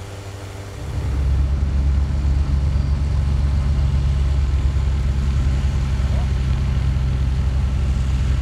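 A small aircraft engine revs up louder as the aircraft taxis away.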